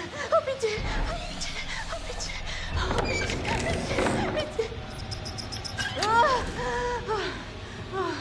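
A young woman speaks in a frightened, breathless voice.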